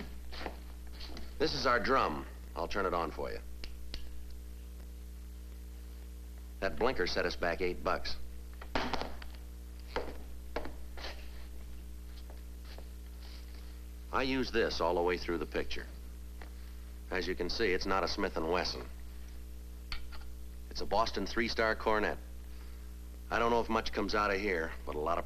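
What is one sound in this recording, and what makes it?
A man talks in short bursts with long pauses, close by.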